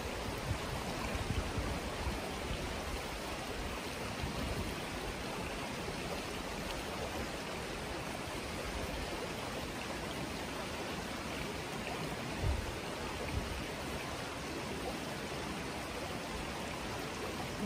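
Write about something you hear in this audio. Floodwater rushes and ripples over low ground outdoors.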